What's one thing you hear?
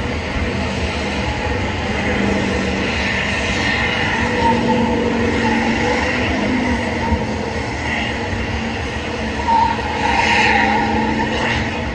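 Tyres screech as they spin on pavement.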